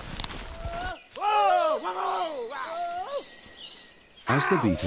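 A stag bellows loudly nearby.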